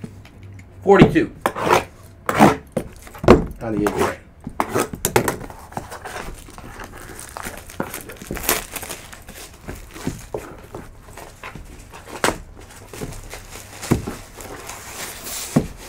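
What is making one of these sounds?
Plastic wrap crinkles as hands tear it open.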